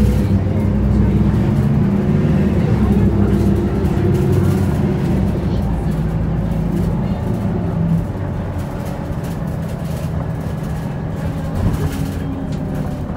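A bus engine hums and rumbles steadily from inside while driving.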